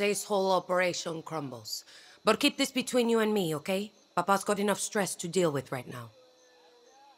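A young woman speaks with animation.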